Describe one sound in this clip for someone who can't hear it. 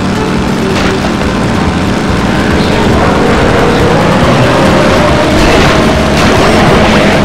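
A small kart engine buzzes and whines steadily.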